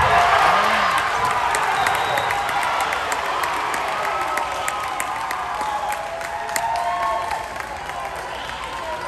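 A crowd cheers and shouts in a large echoing gym, slowly dying down.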